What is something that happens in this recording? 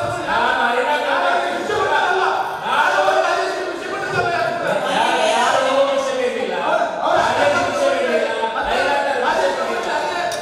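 A middle-aged man speaks forcefully into a microphone in a large echoing hall.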